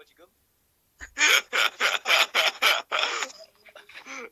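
Young men laugh loudly over an online call.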